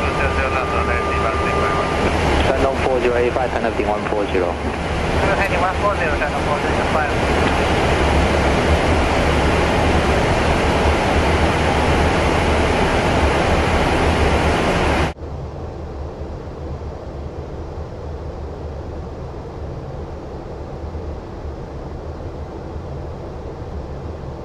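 A jet's engines and rushing air roar steadily in flight.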